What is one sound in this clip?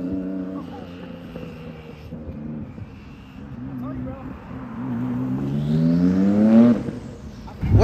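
A car engine roars past, rising in pitch as it accelerates.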